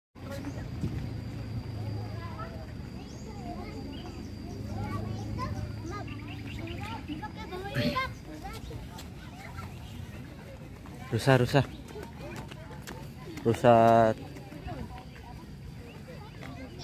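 A crowd of adults and children chatters outdoors at a distance.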